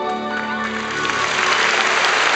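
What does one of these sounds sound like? An orchestra plays a sustained chord in a large hall.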